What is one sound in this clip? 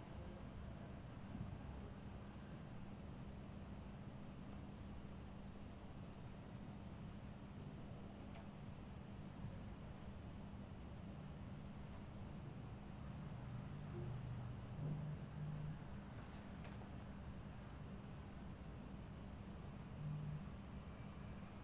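Fingers rub softly through a man's hair.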